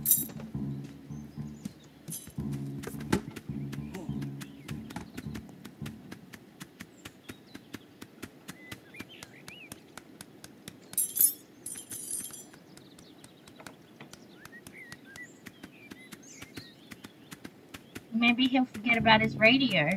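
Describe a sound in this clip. A goose's feet patter quickly and steadily across the ground.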